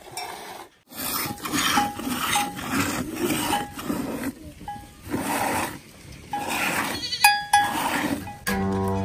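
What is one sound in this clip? Milk squirts into a metal pail in quick, rhythmic bursts.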